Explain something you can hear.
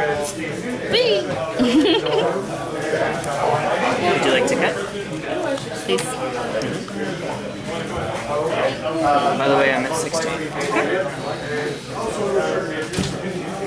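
Playing cards slide and tap softly on a table mat.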